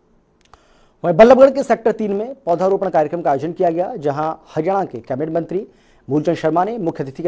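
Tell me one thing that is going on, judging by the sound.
A man speaks clearly and steadily, like a news presenter, close to a microphone.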